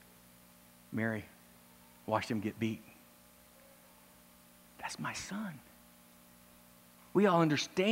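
A middle-aged man speaks with animation through a microphone in a hall, in short bursts with pauses.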